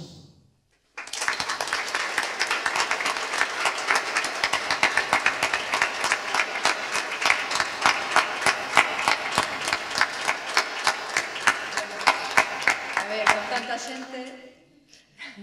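A crowd applauds loudly in a room.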